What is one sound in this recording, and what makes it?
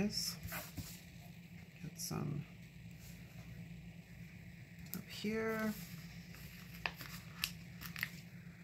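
Paper rustles as stickers are handled.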